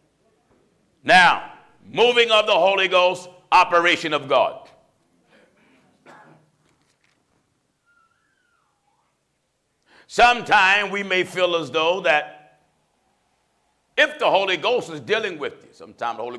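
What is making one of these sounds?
A man preaches with feeling through a microphone, pausing between phrases.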